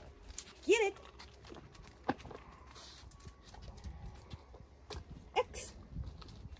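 A woman gives short, sharp commands nearby.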